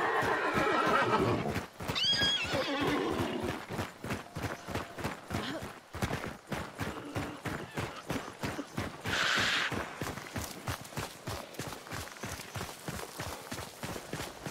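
Running footsteps thud on the ground.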